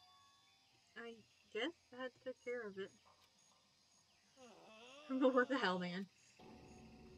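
A young woman speaks with animation into a microphone.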